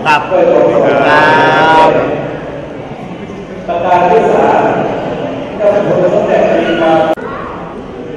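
A man speaks loudly into a microphone, heard through a loudspeaker in an echoing hall.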